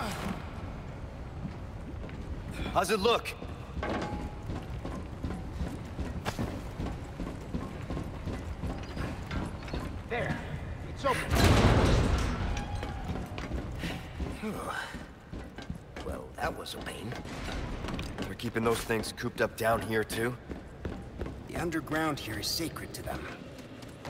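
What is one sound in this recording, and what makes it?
Footsteps thud on metal floors.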